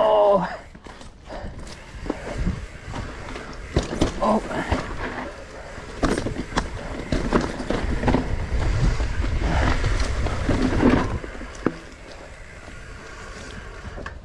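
Bike tyres rattle and crunch over a rough dirt trail.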